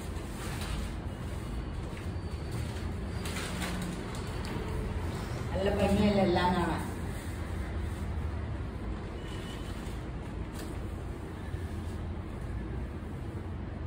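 Fabric rustles as it is unfolded and draped.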